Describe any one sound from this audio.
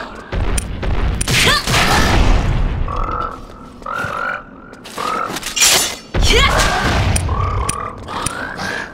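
Blades whoosh and strike hard in quick blows.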